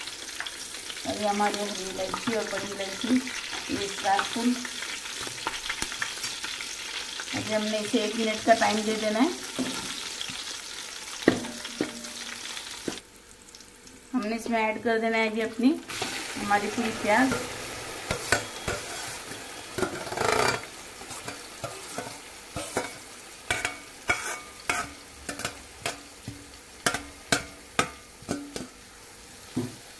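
Hot oil sizzles and crackles in a pan.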